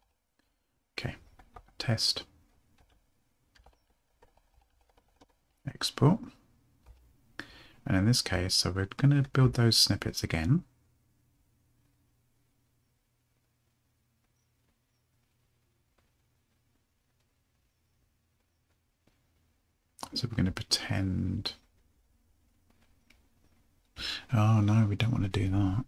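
A man talks calmly and close to a microphone, in bursts with pauses.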